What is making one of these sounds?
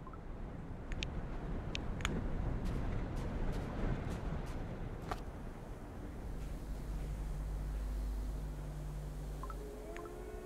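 Soft interface clicks and blips sound.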